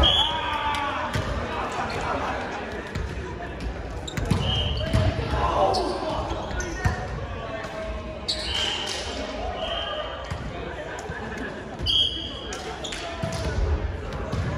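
Young women and men talk and call out to each other across the gym.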